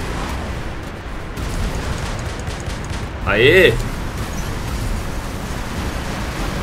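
Energy weapons fire with buzzing blasts.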